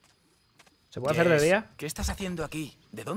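A young woman calls out with surprise, close by.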